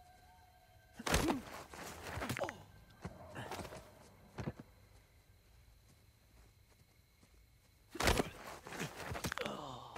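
A scuffle breaks out with heavy thuds and blows.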